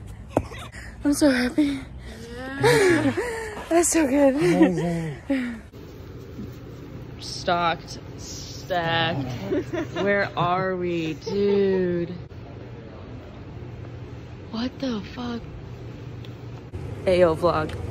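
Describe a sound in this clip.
A young woman talks excitedly and laughs close by.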